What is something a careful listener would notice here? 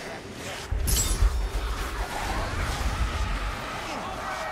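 A sword strikes a creature with heavy, thudding blows.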